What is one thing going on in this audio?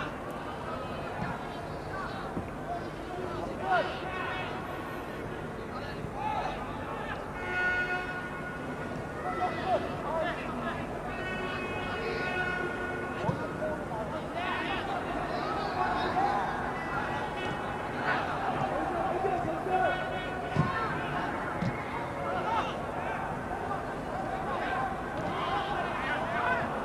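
A large crowd murmurs and cheers steadily across an open stadium.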